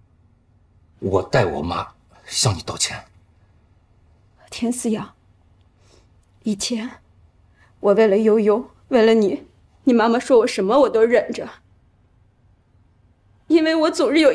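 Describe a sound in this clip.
A young woman speaks quietly in a tearful voice, close by.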